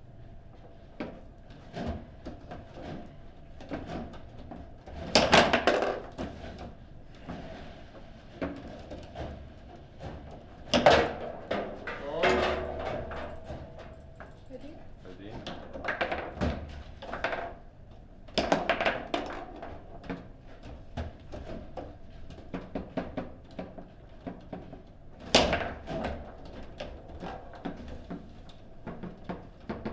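Rods of a table football table rattle and spin as players jerk them.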